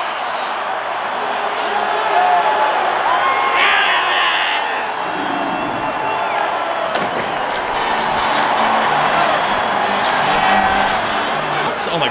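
Fans chant in unison across the stands.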